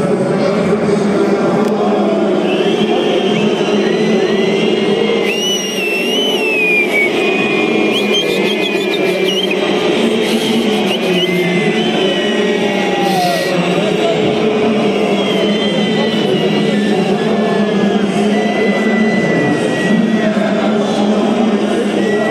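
A huge stadium crowd sings and chants loudly together in a vast open arena.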